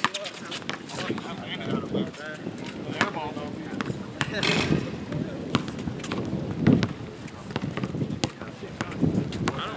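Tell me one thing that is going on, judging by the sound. Young men call out and talk on an outdoor court.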